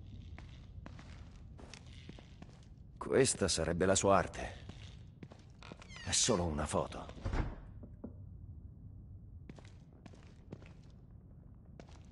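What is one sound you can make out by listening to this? Footsteps fall slowly on a hard floor.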